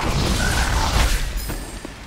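A magical blast bursts with a sharp whoosh.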